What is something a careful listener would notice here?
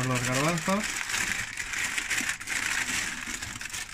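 Dried beans rattle and slide in paper.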